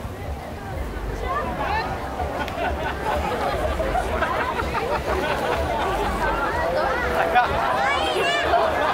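A crowd of people chatter and murmur nearby outdoors.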